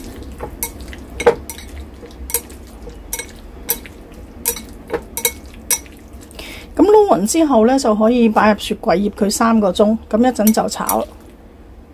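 Chopsticks stir raw chicken strips in a ceramic bowl, clicking against its side.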